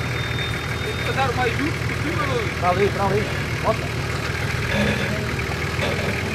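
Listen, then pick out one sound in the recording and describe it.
An off-road vehicle's engine idles with a low rumble.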